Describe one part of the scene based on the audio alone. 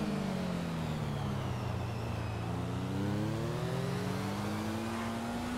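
A motorcycle engine hums steadily, dropping in pitch and then rising again as it speeds up.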